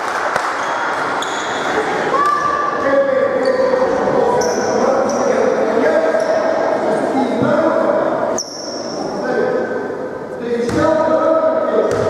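Young boys shout and call out across an echoing hall.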